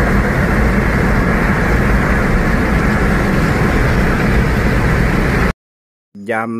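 A car engine drones loudly while driving.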